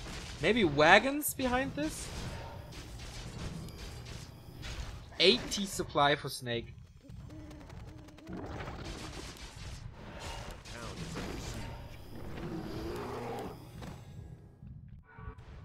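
Swords and blows clash in a fierce battle.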